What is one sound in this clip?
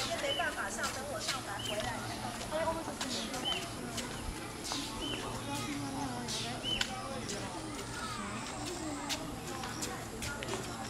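Footsteps shuffle on paving stones.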